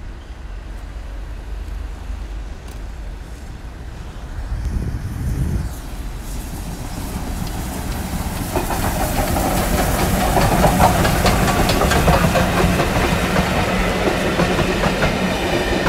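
A steam locomotive approaches, chuffing louder and louder.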